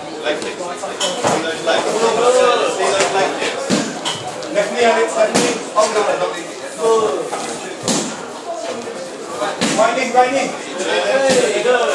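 Kicks and punches thud against bodies.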